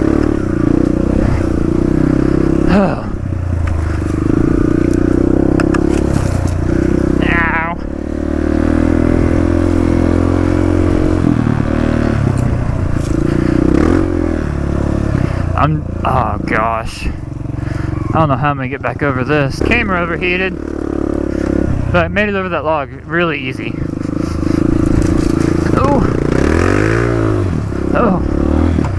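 A dirt bike engine buzzes loudly close by, revving up and down.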